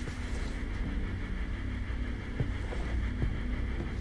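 Heavy curtains rustle as a man pushes them apart.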